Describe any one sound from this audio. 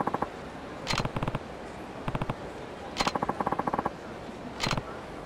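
Two guns fire sharp shots.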